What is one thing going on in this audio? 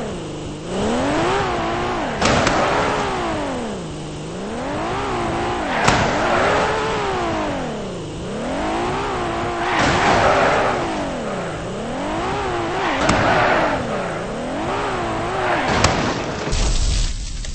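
A car engine revs up and drops back again and again.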